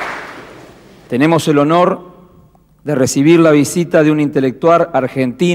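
A man reads aloud into a microphone.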